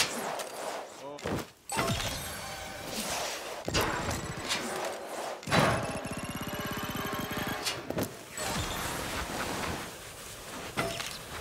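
Skis hiss and scrape across snow.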